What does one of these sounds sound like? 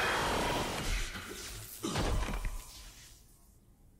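A heavy armoured body crashes down onto a metal floor.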